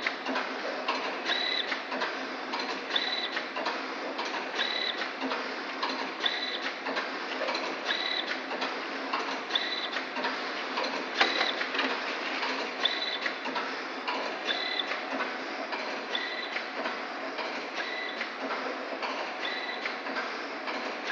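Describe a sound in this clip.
A packaging machine runs steadily with a loud mechanical whir.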